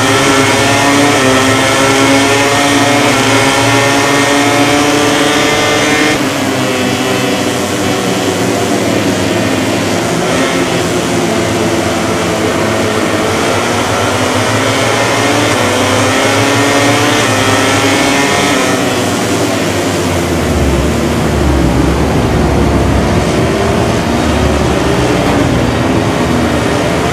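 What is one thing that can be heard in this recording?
A motorcycle engine roars at high revs, rising and falling in pitch as it shifts gears.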